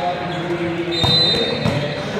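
A volleyball is spiked with a sharp slap in a large echoing hall.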